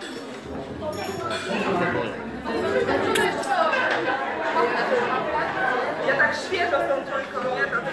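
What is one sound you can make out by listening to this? Several men and women talk over one another at a table close by.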